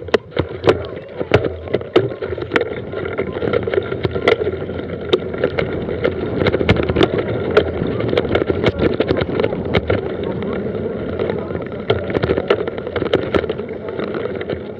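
A mountain bike's tyres rumble over dirt and gravel.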